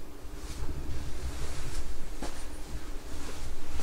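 A man whispers close by.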